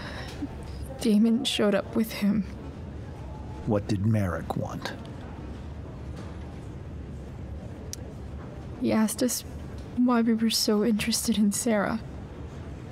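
A young woman speaks quietly and hesitantly.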